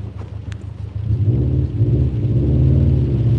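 A car engine revs up and roars louder.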